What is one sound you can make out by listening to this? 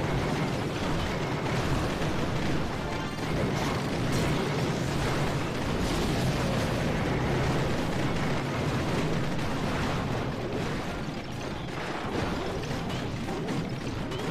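Explosions boom and crackle again and again.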